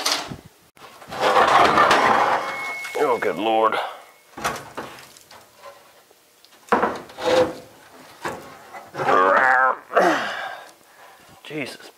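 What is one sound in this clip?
Wooden boards knock and scrape against metal.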